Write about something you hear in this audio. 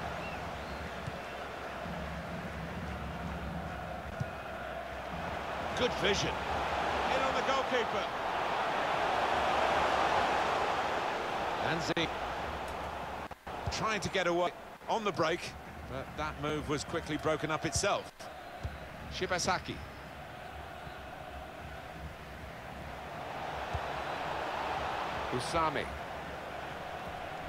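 A stadium crowd murmurs and swells into a roar.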